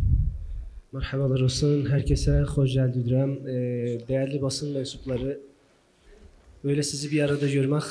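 A man speaks steadily into a microphone over loudspeakers in an echoing hall.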